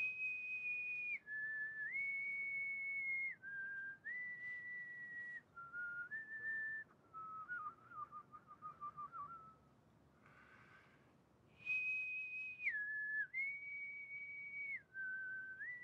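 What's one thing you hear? An elderly man whistles a slow tune close by.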